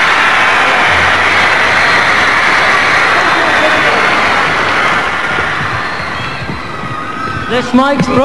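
A large crowd screams and cheers in a big echoing hall.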